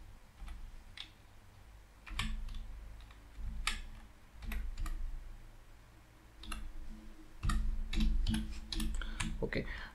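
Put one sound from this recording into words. Keys click on a computer keyboard as someone types.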